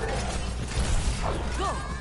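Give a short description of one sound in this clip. A futuristic gun fires in rapid bursts.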